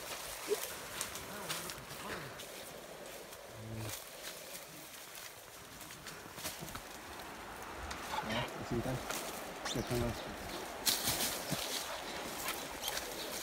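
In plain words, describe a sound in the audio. Leafy branches rustle as they are brushed aside.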